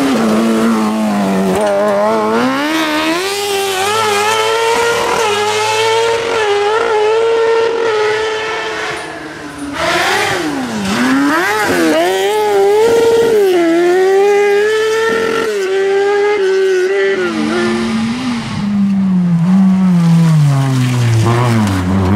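A racing car engine roars and revs hard.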